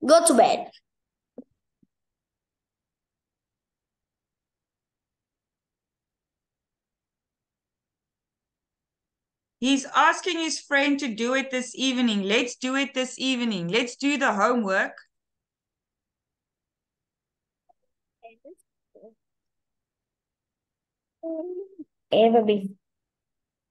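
A woman speaks through an online call.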